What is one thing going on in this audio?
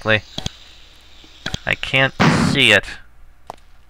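A magic spell crackles and zaps in short bursts.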